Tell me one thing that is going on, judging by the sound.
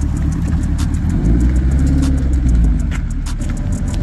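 A sports car engine revs loudly and accelerates away.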